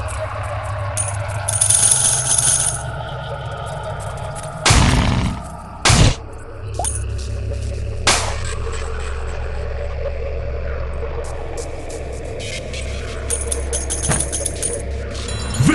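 Coins chime as they are collected.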